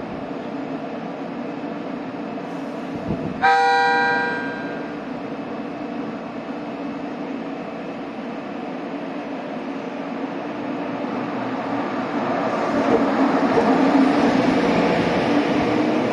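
A train rolls slowly into the station with a steady rumble that grows louder as it passes close by.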